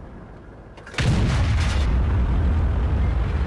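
A tank engine rumbles low and heavy.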